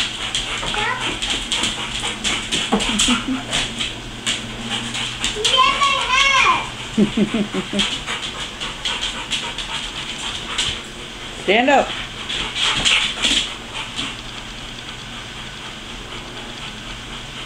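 A dog's claws click and scrape on a tile floor.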